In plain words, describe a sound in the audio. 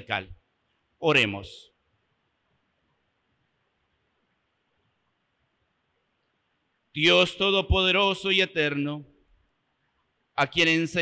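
A middle-aged man chants in a sustained voice through a microphone, with pauses between phrases.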